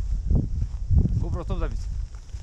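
A man speaks briefly close by.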